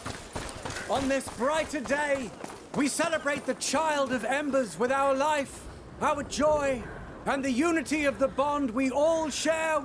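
A man speaks loudly and proclaims with warmth.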